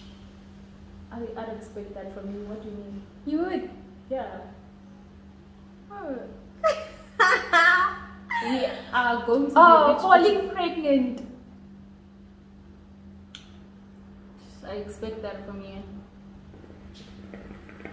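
A second young woman talks and laughs with animation close by.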